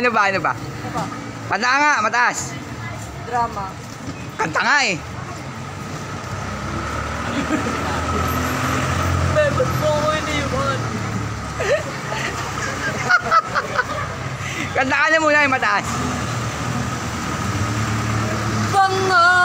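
A boy cries and wails loudly close by.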